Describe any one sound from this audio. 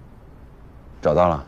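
A young man speaks calmly into a phone, close by.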